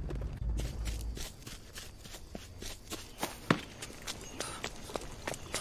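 Footsteps rustle steadily through leaves and undergrowth.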